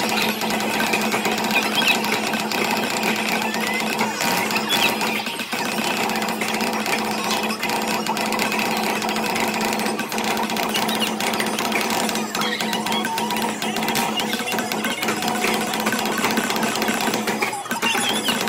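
Drumsticks beat rapidly on a taiko drum.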